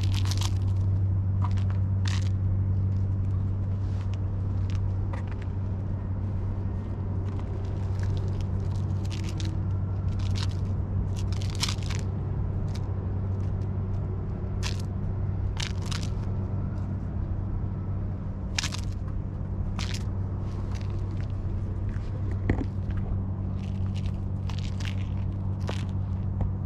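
A cat's paws scuffle and scrape on gravelly concrete.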